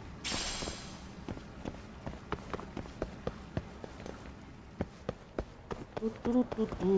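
Footsteps tap quickly on metal stairs.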